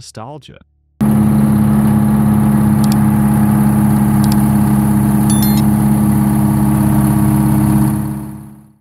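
A diesel truck engine idles loudly with a steady, rhythmic chugging.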